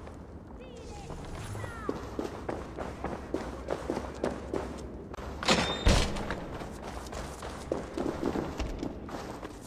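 Footsteps thud on a stone floor in an echoing space.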